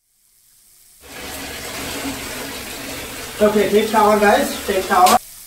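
Shower water sprays steadily.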